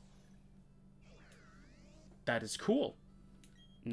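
A video game plays a short burst of warbling electronic sound effects.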